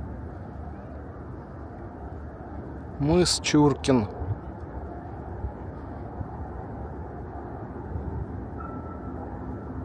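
Small waves lap on open water.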